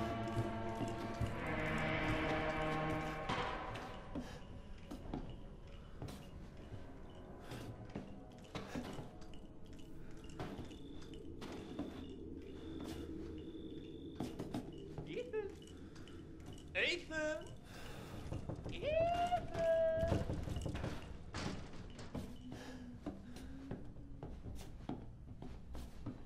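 Footsteps creak slowly over a wooden floor.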